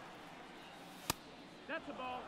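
A pitched ball smacks into a catcher's mitt.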